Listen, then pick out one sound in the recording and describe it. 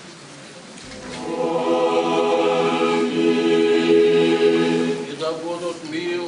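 A choir sings a sustained chord loudly.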